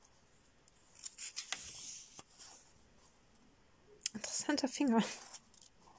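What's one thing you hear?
Paper pages rustle and flip as a sketchbook is leafed through.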